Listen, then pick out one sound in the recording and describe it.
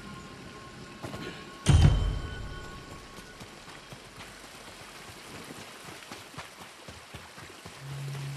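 Footsteps splash through shallow liquid.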